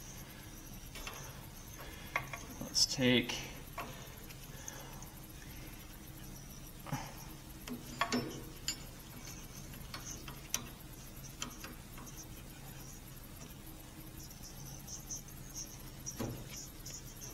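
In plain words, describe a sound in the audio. Metal tools click and clatter against metal parts.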